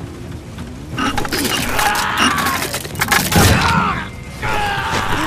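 A chainsaw starts and roars loudly.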